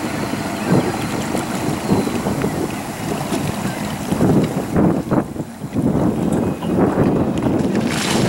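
Water churns and splashes behind a motorboat.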